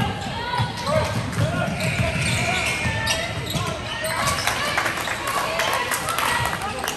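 A basketball bounces with dull thumps on a wooden floor.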